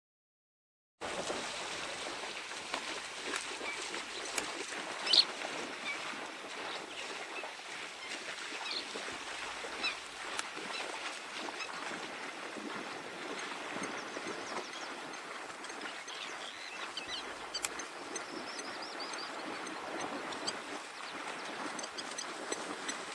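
Ostriches splash and wade through shallow water.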